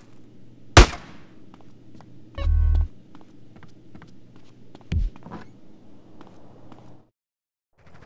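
Footsteps run up wooden stairs.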